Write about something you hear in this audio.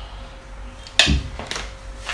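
A glass bowl knocks down onto a hard surface.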